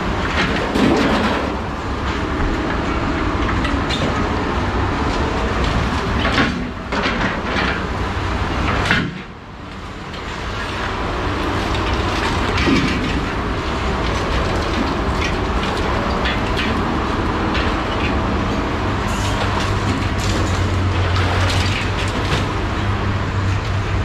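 A heavy machine engine rumbles steadily outdoors.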